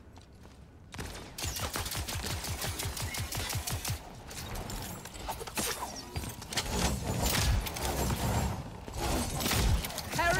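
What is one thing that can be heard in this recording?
Game weapons fire and energy blasts whoosh loudly.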